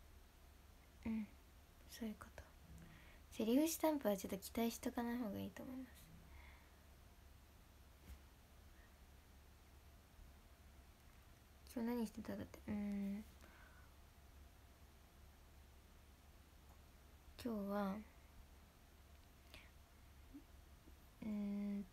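A young woman speaks softly and casually close to a microphone, in short bursts.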